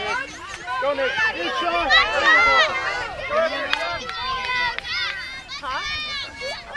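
Young children shout and squeal excitedly outdoors.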